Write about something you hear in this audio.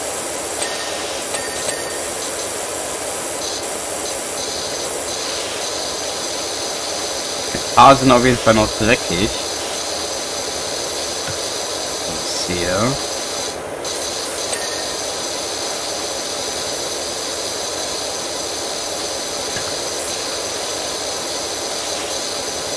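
A pressure washer sprays a hissing jet of water against a surface.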